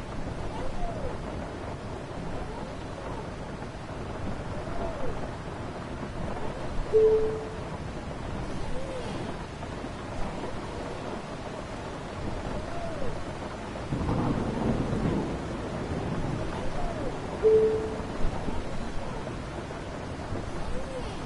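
Windscreen wipers sweep back and forth with a rubbery squeak.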